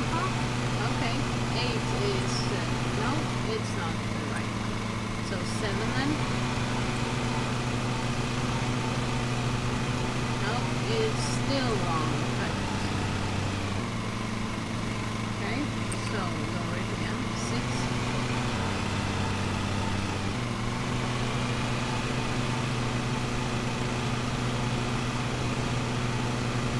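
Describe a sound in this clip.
A lawn mower engine hums steadily, its pitch shifting now and then.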